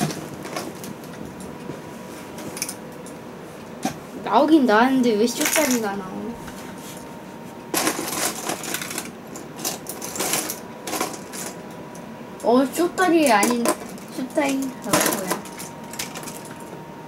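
Plastic toy bricks rattle and clatter as a hand rummages through a bin.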